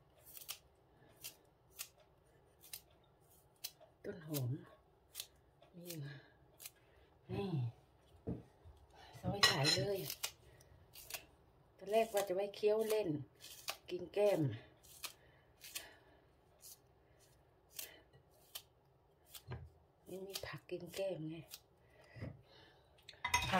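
A knife snips through green onion stalks with light, quick clicks.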